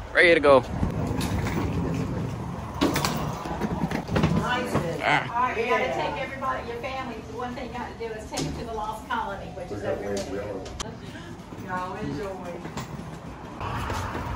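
Suitcase wheels roll over pavement and tiles.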